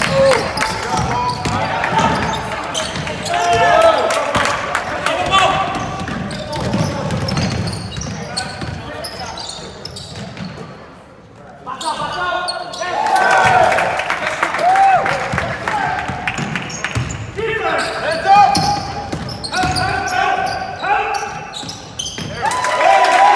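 Sneakers squeak sharply on a gym floor.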